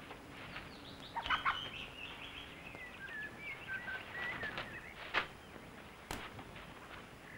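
Footsteps rustle through tall grass and undergrowth.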